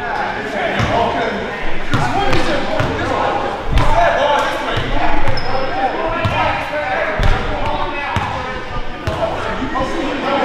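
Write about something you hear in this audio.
Young people chatter and call out across the echoing hall.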